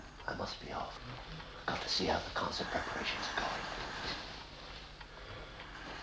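An elderly man breathes heavily.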